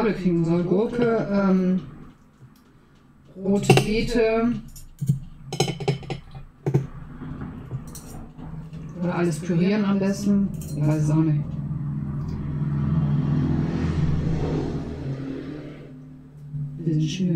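A fork scrapes and clinks against a plate.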